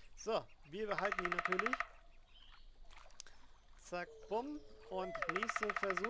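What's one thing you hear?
A fishing reel whirs with a fast clicking rattle.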